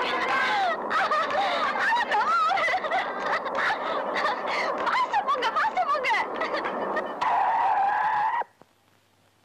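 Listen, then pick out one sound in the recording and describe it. A young woman shouts loudly.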